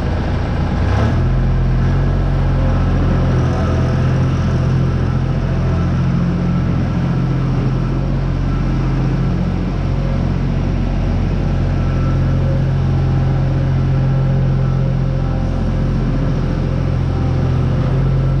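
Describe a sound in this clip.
A skid-steer loader engine drones and revs nearby.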